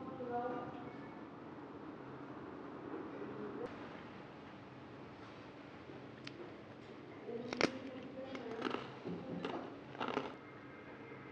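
Chopsticks click against a plate.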